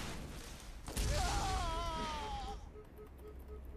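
An electric shock crackles and buzzes.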